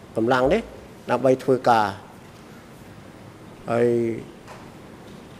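A middle-aged man speaks slowly into a microphone, in short phrases with pauses.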